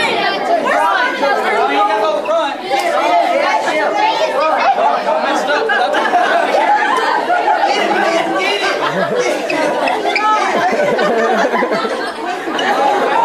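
A crowd of teenagers chatters and laughs loudly nearby, echoing in a room.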